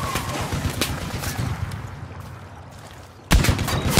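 A pistol fires.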